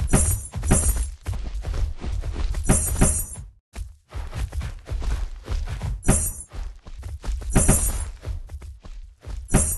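A large dragon's wings beat with heavy whooshes.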